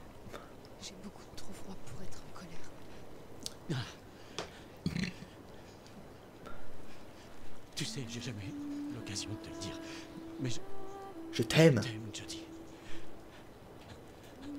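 A young man speaks quietly and tenderly, close by.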